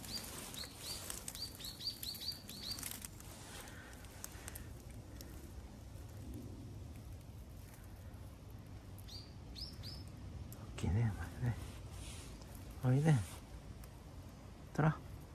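Dry leaves rustle under a cat's paws.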